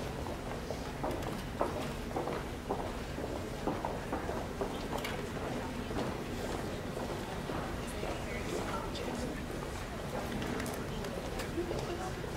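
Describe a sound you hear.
A man speaks calmly through a microphone and loudspeakers in a large echoing hall.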